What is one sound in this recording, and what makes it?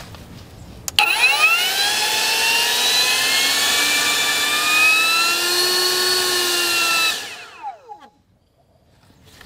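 An electric leaf blower roars loudly with a whining motor, then winds down.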